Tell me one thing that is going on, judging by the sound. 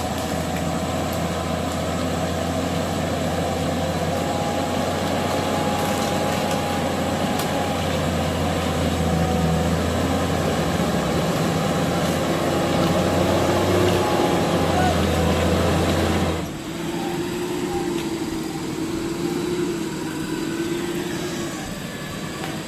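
A truck engine rumbles and roars close by, then suddenly drops to a softer hum.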